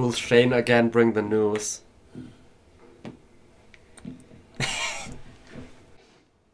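Young men laugh.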